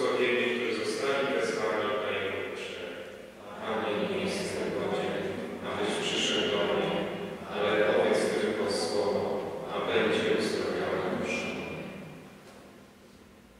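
A man speaks calmly nearby in a large echoing space.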